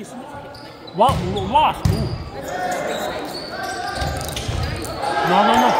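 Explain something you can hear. Players hit a volleyball back and forth with dull thuds.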